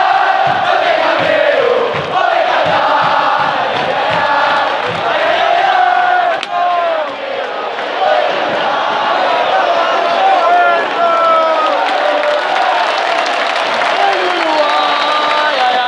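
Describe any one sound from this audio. A huge stadium crowd sings and chants loudly in unison.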